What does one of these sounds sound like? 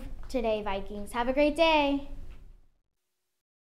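A girl speaks cheerfully and close to a microphone.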